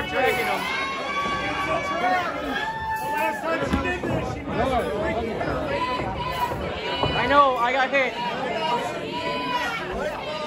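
A crowd of men and women shouts and cheers loudly nearby.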